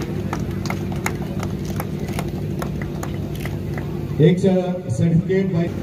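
A small crowd claps outdoors.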